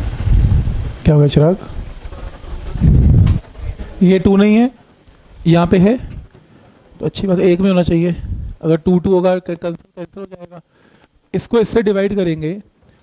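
A man speaks calmly, close by, with pauses.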